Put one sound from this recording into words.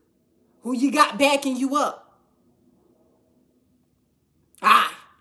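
A young woman speaks close up with animation.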